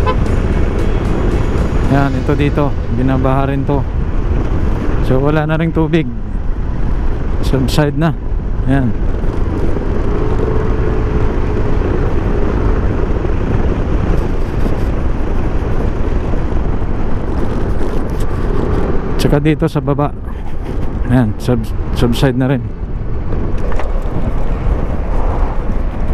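Wind buffets loudly against a moving scooter.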